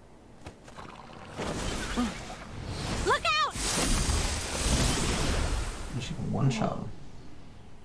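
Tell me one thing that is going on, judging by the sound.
A magical whoosh swells loudly and then fades away.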